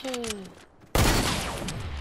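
A gun fires a burst of loud shots.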